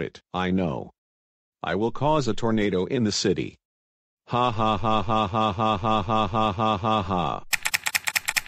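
A synthetic male voice speaks in a flat, robotic tone.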